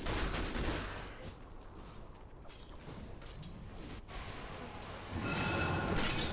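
Magic blasts and weapon hits crackle in a fight.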